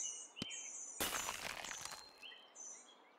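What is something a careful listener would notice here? A short whooshing game sound effect plays.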